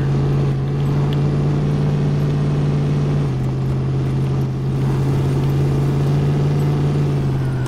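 A truck engine rumbles steadily at low revs.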